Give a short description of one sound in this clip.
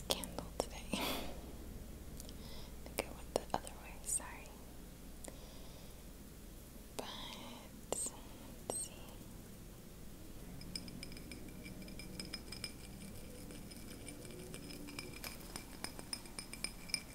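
Fingernails tap and click softly on a glass jar.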